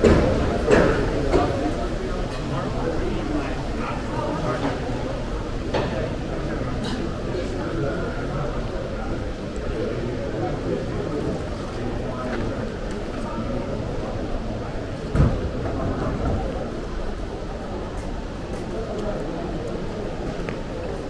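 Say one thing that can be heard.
Footsteps pass on a paved street outdoors.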